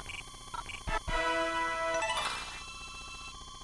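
A bright electronic chime rings out and fades quickly.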